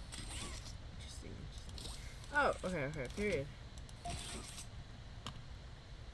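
A mechanical grabber arm shoots out with a whir.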